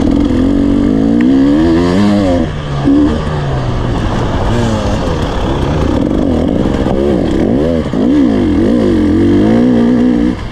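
A dirt bike engine revs hard, rising and falling in pitch as it shifts gears.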